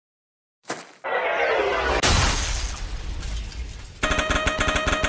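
A rocket roars past and fades.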